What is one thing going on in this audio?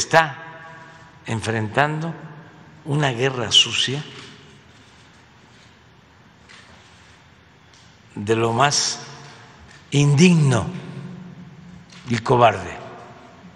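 An elderly man speaks calmly into a microphone in bursts, with pauses between phrases.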